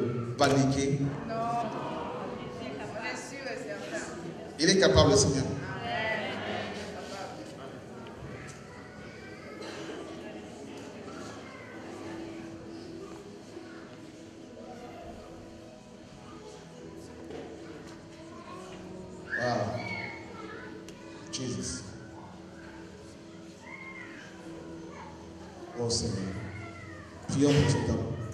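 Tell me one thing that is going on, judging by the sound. A man speaks with fervour into a microphone in a reverberant hall.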